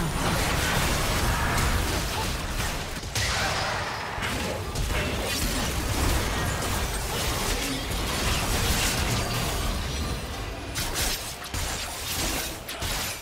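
Video game combat sound effects clash, whoosh and crackle.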